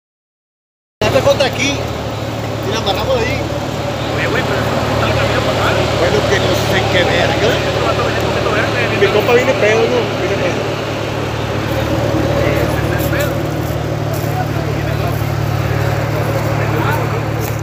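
A crowd of men talks and calls out outdoors.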